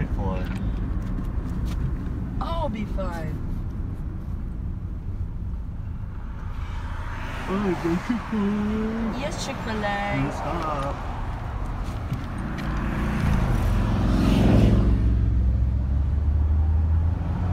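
A car rumbles steadily along the road.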